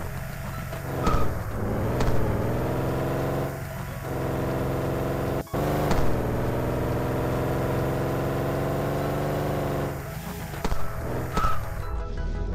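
A car engine hums steadily, rising and falling in pitch as it speeds up.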